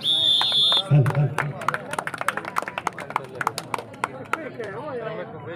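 Spectators clap their hands rapidly.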